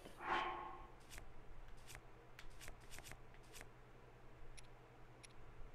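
Menu selections click softly as items are scrolled.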